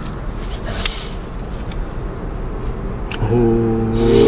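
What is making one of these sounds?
Gloved hands scrape and dig through loose soil close by.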